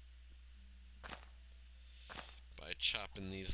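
An axe thuds against wood.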